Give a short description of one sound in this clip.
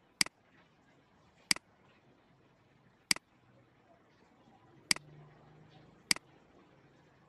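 A computer mouse clicks sharply, a few times.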